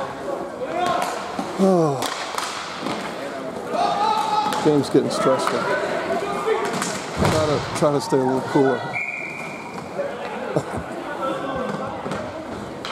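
Hockey sticks clack sharply against a ball and the floor.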